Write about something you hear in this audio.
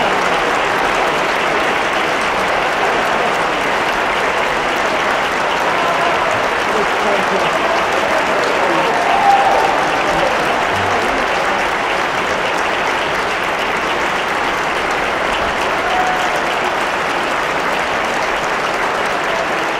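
An audience cheers.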